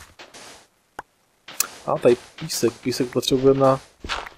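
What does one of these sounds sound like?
Digging crunches in short bursts.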